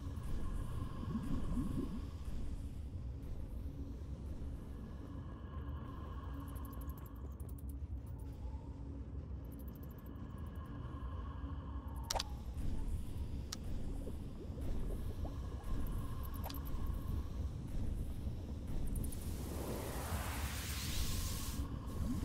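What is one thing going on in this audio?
Bursts of fire roar and whoosh.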